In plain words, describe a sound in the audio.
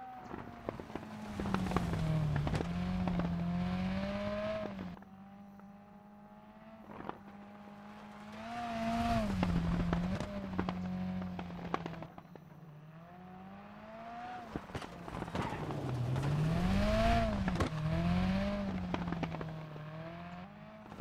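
Tyres skid and crunch on loose gravel.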